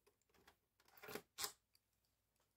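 A plastic cover clicks into place.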